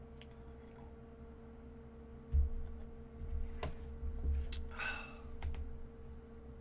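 A young man gulps a drink close to a microphone.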